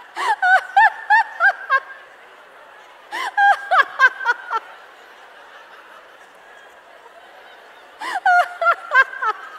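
A woman laughs loudly into a microphone.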